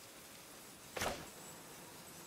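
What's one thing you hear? A short sharp swish sounds.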